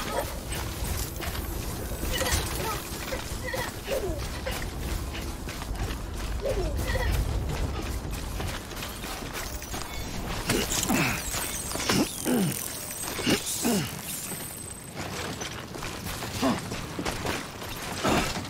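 Footsteps crunch over grass and rock.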